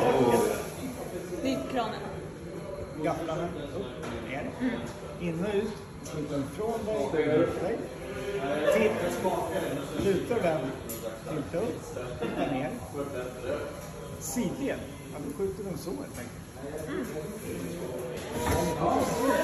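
An older man explains calmly, close by.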